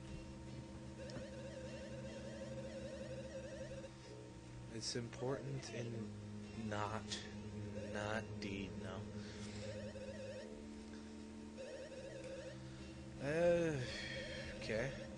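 Rapid game blips chatter as dialogue text scrolls.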